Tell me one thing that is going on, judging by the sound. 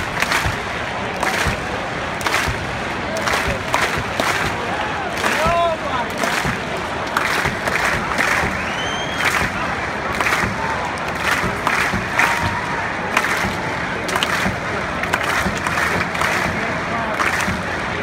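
A large crowd murmurs and cheers around the listener.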